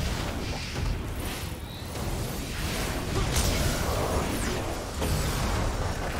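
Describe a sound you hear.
A fiery blast roars loudly.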